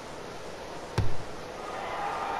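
A rugby ball is kicked with a dull thump.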